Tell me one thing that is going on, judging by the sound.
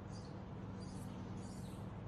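A man blows out smoke with a soft breath.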